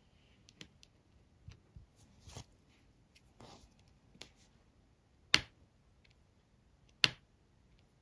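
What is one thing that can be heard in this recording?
A plastic pen tip taps and clicks as small beads are pressed onto a sticky sheet.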